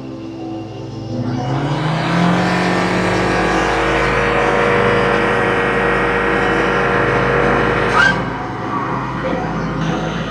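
A car engine revs up loudly and roars steadily.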